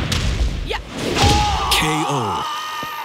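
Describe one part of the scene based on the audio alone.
A loud knockout blast and crash sounds.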